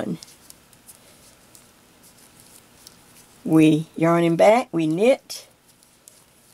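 Knitting needles click softly together.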